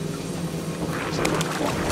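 Footsteps splash through mud and puddles.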